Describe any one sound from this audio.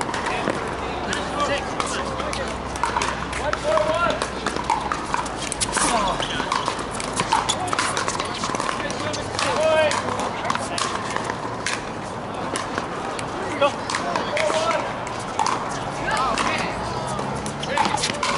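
Paddles hit plastic balls with sharp pops, over and over.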